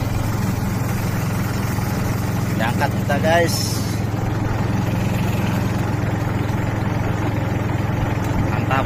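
A boat motor drones steadily throughout.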